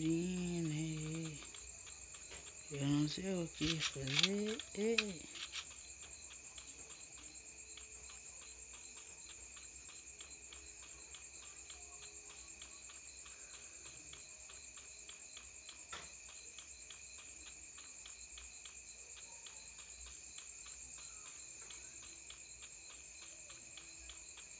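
Quick footsteps run steadily over grass.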